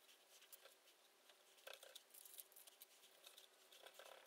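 Metal parts clink and scrape together.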